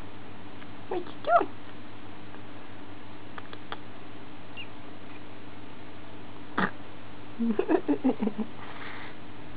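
Baby rats squeak softly.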